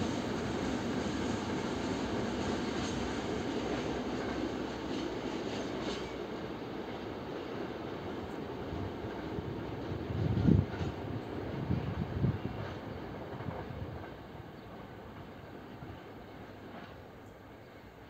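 A train rumbles in the distance and slowly fades away.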